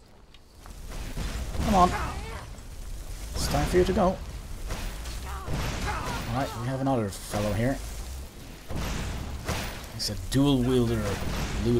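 Flames roar and crackle in bursts.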